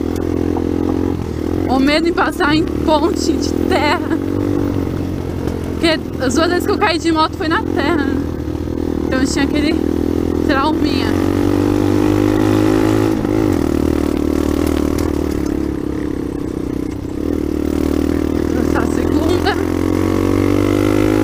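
A dirt bike engine hums as the bike cruises along a dirt track.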